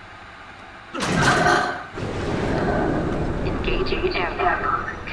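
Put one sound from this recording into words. A heavy metal door grinds and rumbles open.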